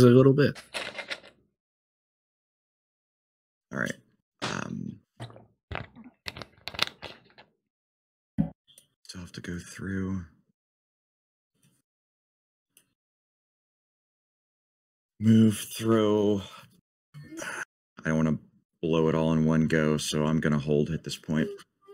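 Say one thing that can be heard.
A man talks with animation over an online call, in bursts with pauses.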